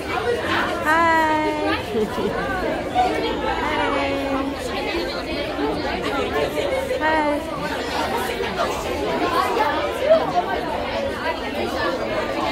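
A crowd of young women chatters and talks all around, close by, outdoors.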